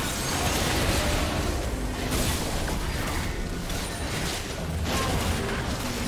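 Game spells and attacks crackle and boom in a fight.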